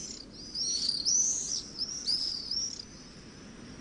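Small birds chirp high and quick.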